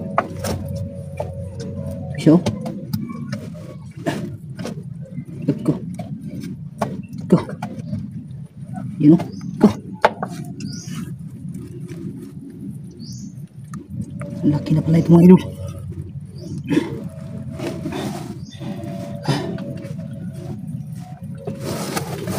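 A hard object scrapes and knocks against soil and roots close by.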